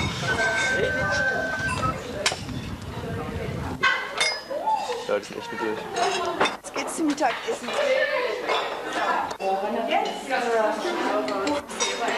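Cutlery clinks against plates and bowls.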